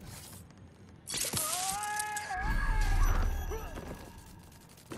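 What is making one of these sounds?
A guard's body thuds to the floor.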